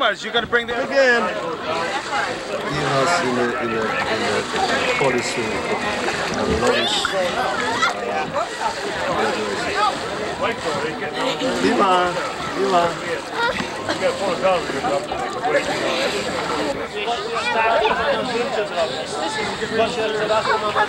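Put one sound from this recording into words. Children shout and laugh.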